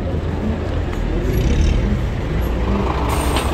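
A car drives by.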